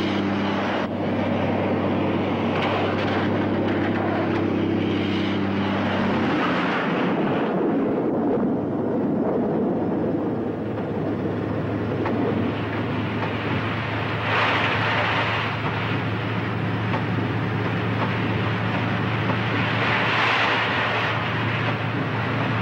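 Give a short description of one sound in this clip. Truck tyres splash and hiss through standing water.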